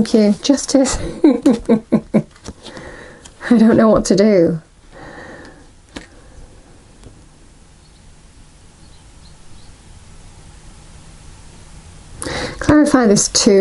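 Playing cards slap softly onto a table.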